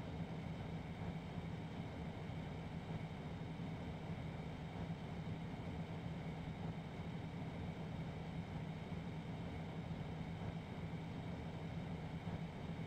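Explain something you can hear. A locomotive engine rumbles steadily.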